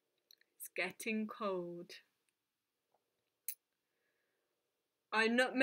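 A woman reads aloud calmly and close by.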